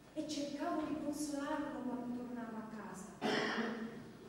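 A young woman sings loudly on a stage in an echoing hall.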